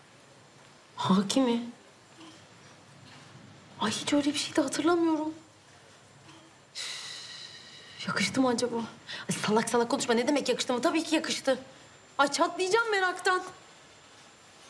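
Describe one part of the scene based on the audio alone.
A young woman speaks calmly and thoughtfully, close by.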